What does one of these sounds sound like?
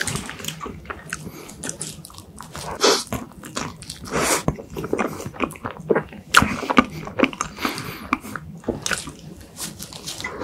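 A young man chews soft food wetly and smacks his lips close to a microphone.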